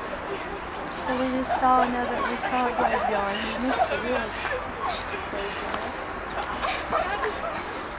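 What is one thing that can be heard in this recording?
An elderly man talks close by.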